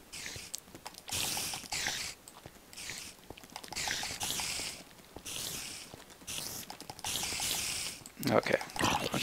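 Fire crackles and hisses in bursts.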